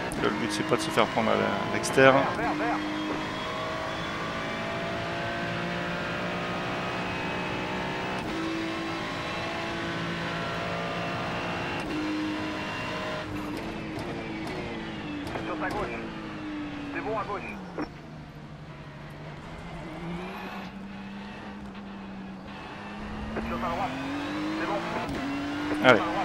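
A racing car engine roars and shifts through gears at high speed.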